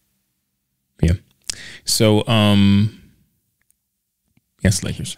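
A man speaks calmly into a microphone, close by.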